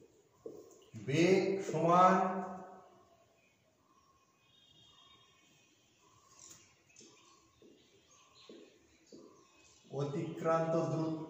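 A man speaks calmly, as if teaching, close by.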